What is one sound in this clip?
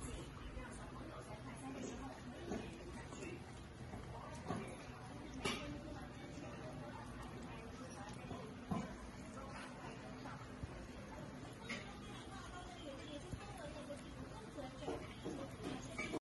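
A dog crunches kibble noisily.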